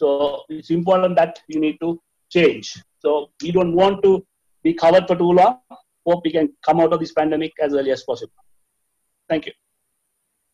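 A woman speaks steadily through an online call.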